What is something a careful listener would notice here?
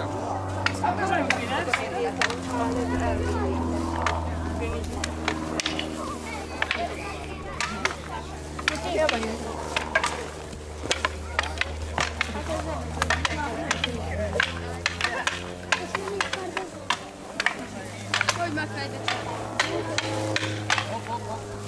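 Children shout and talk outdoors.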